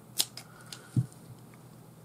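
A small metal hook clicks softly as hands handle it.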